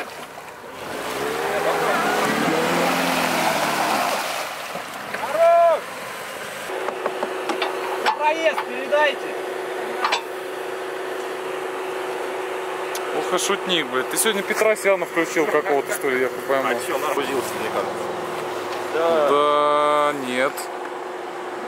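Men talk outdoors, calling to each other.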